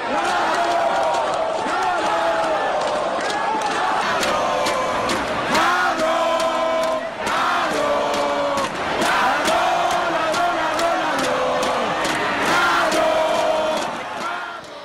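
A large crowd chants loudly in a stadium.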